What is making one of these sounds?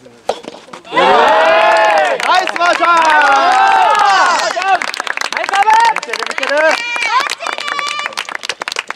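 Young men shout and cheer loudly close by.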